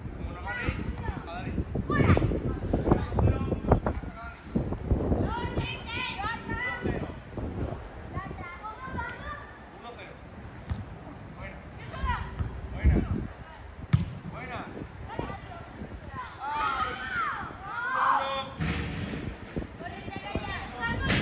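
Children shout and call out with high voices outdoors.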